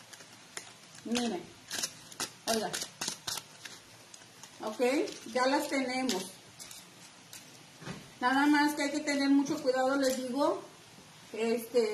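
A woman talks calmly, close by.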